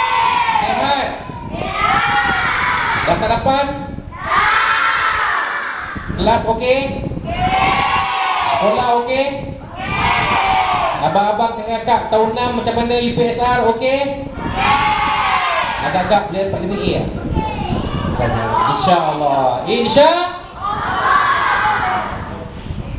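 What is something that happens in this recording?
A man sings loudly into a microphone, with a strong echo through loudspeakers.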